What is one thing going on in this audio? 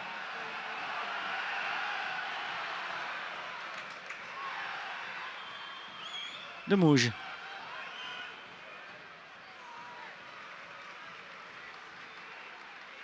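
A large stadium crowd murmurs and cheers outdoors.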